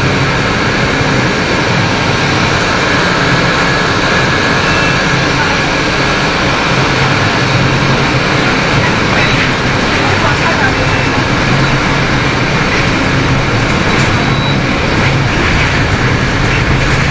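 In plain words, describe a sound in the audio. A bus rattles and hums over the road.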